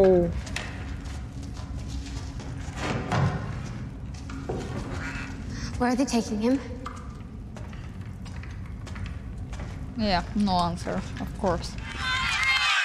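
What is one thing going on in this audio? A young woman speaks close to a microphone, reacting with surprise.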